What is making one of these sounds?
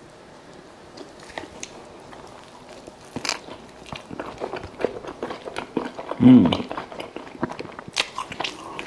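A man chews food noisily close up.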